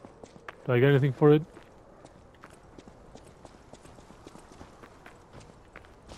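Footsteps crunch on loose stones.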